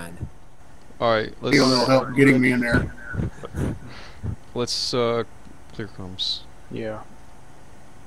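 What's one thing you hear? A man speaks with animation into a headset microphone, close up.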